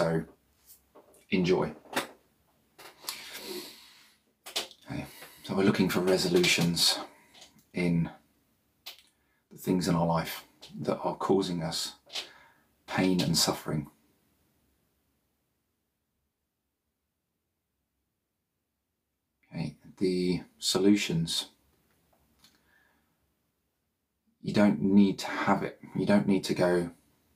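A man speaks calmly and softly into a close microphone, with long pauses.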